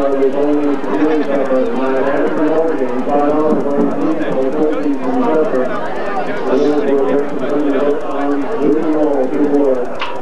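Young women chant loudly in unison nearby.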